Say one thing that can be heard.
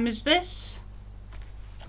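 A woman speaks briefly and brightly, close to a microphone.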